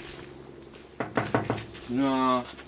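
A man knocks on a glass door.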